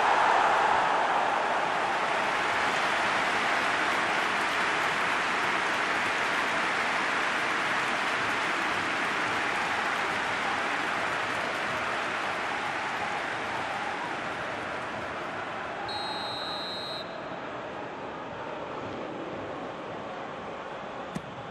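A large stadium crowd roars steadily and slowly fades.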